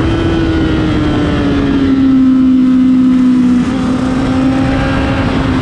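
Wind rushes hard past the rider.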